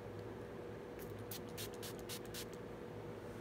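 A spray bottle hisses in several quick bursts.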